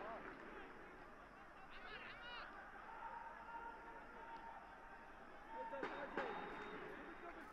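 A stadium crowd cheers and chants in the distance.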